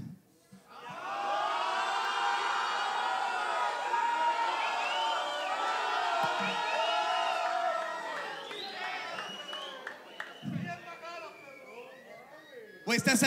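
A crowd cheers and whistles loudly in an echoing hall.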